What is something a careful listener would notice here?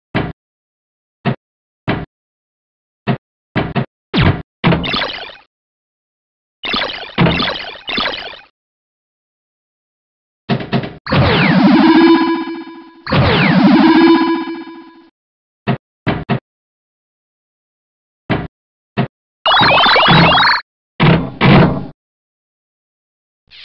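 Electronic pinball game sounds beep, bong and chime in short bursts.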